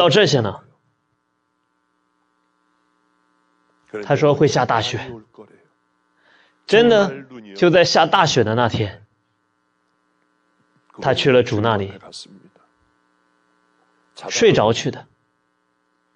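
A middle-aged man speaks calmly into a microphone, with long pauses.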